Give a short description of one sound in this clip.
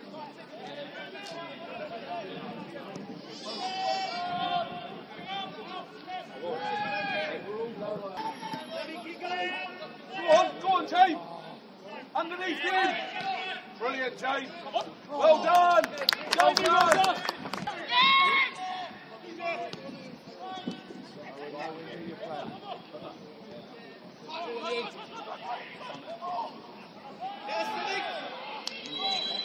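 Football players shout to each other across an open outdoor pitch.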